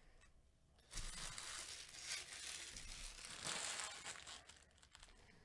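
A foil wrapper crinkles as it is picked up.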